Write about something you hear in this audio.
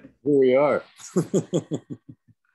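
A middle-aged man laughs heartily over an online call.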